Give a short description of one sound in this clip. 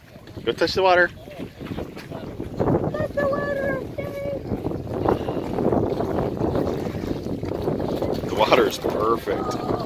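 Small waves lap gently on a pebbly shore.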